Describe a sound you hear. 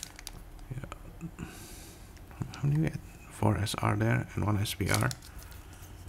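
A foil wrapper crinkles.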